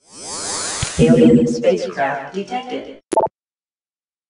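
An electronic alert chimes.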